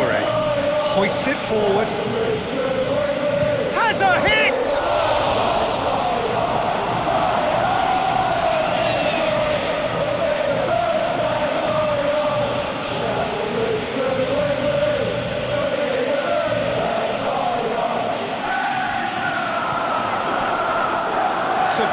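A large stadium crowd sings and chants loudly throughout.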